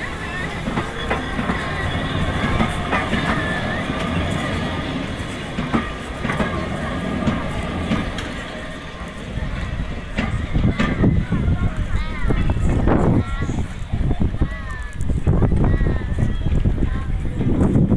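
Wheels squeal on the rails.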